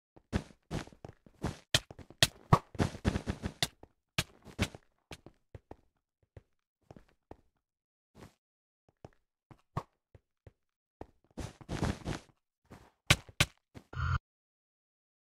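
Blocks clack as they are placed in quick succession.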